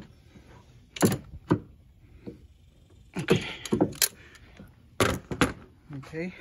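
A metal hand tool clicks and knocks against engine parts.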